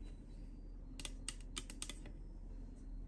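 A plastic remote control clacks as it is picked up from a table.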